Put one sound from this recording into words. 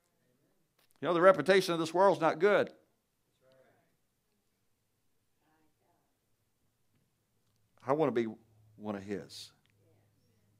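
A man speaks through a microphone in a large room, with pauses between phrases.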